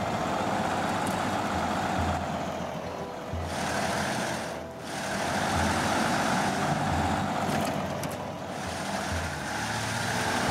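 Tyres crunch over snow and rocks.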